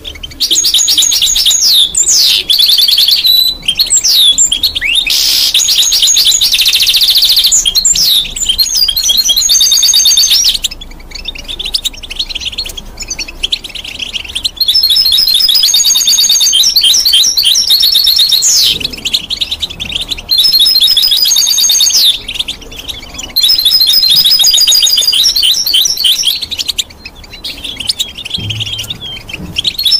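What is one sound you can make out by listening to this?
A small bird sings loud, rapid warbling trills close by.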